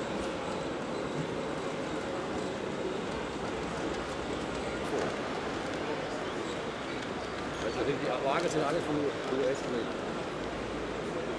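A model train rumbles steadily along the track.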